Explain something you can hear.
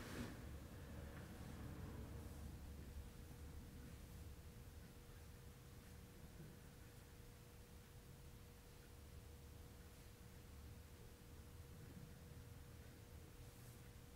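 Hands softly rub and press on cloth.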